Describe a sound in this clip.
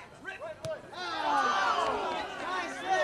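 A crowd cheers and yells loudly.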